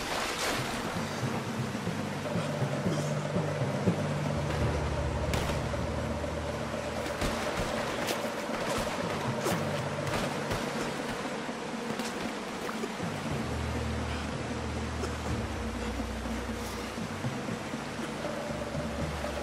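Water splashes with swimming strokes.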